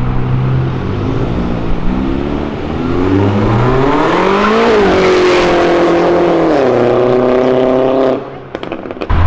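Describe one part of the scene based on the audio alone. A small car's engine revs hard and rises in pitch as it accelerates away.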